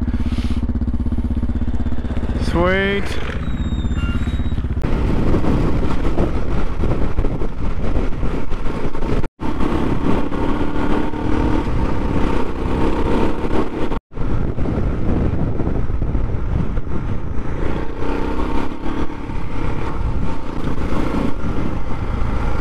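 A dirt bike engine revs and roars close by.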